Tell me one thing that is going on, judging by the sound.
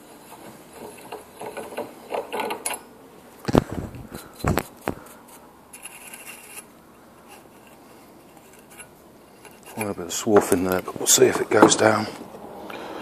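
Metal tools clink and clatter against a bench vise.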